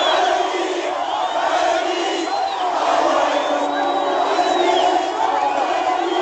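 A large crowd sings and chants loudly outdoors.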